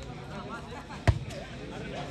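A hand strikes a volleyball with a sharp smack.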